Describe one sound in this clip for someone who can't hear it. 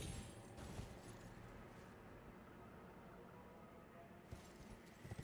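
Hooves thud on roof tiles.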